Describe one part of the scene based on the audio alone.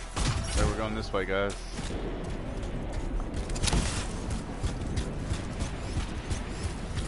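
Heavy metallic footsteps stomp on rocky ground.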